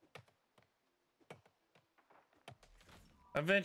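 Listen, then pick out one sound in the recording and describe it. An axe chops into a tree trunk with sharp knocks.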